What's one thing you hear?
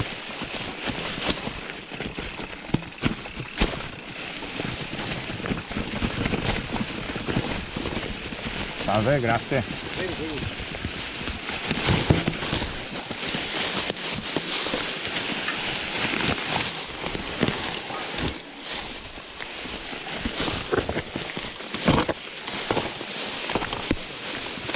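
Bicycle tyres crunch and rustle over dry leaves.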